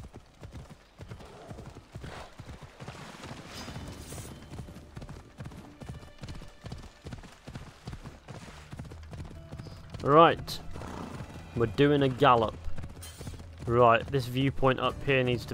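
A horse's hooves thud steadily on a dirt path at a gallop.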